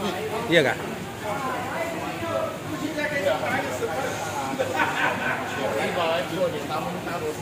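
Several men talk nearby in a busy crowd.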